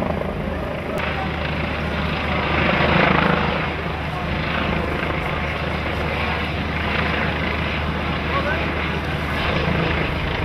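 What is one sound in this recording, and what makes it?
A helicopter's rotor thuds steadily overhead.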